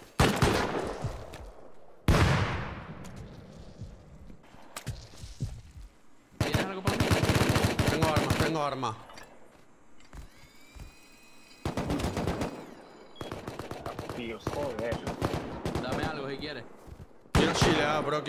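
A heavy gun fires in bursts of rapid shots.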